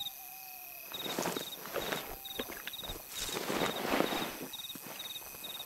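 Footsteps crunch over loose stones and gravel.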